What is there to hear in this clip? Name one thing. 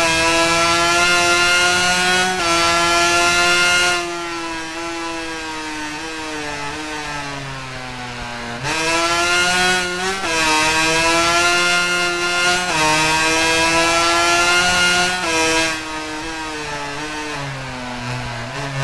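A 250cc two-stroke racing motorcycle engine screams at high revs and drops revs into corners.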